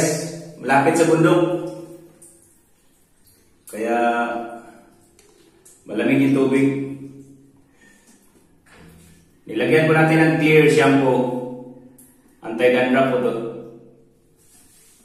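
A man talks calmly in bursts, close to the microphone.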